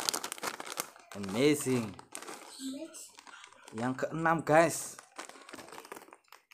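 A plastic snack wrapper crinkles in a man's hands.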